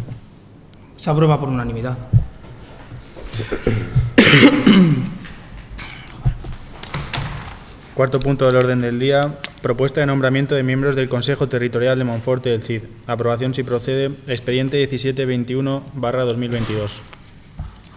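A young man speaks steadily through a microphone in an echoing room.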